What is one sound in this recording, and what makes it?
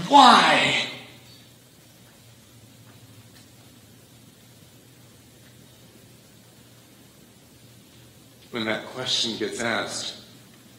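A man speaks with emphasis into a microphone in a room with a slight echo.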